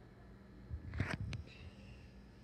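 A cat meows briefly close by.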